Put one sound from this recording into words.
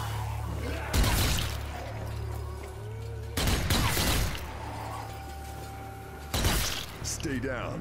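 A rifle fires loud shots that echo in a large hall.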